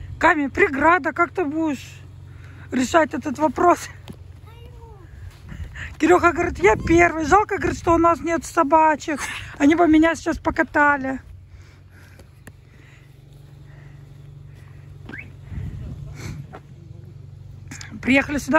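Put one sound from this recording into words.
A young girl talks excitedly and close by.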